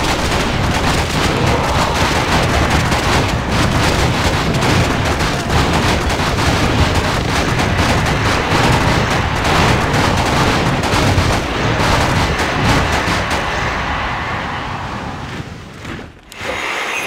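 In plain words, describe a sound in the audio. Swords clash and clang rapidly in a loud battle.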